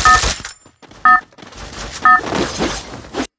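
A countdown beeps twice.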